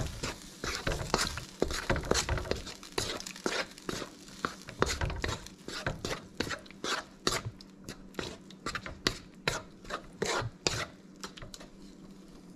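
A wooden spatula scrapes and taps quickly against a metal pan.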